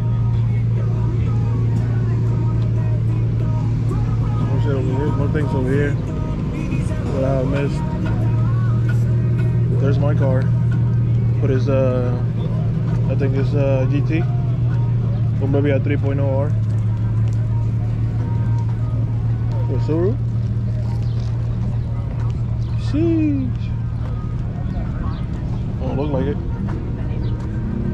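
A crowd of people talks outdoors.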